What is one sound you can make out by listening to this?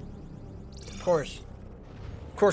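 A spaceship whooshes as it leaps to light speed.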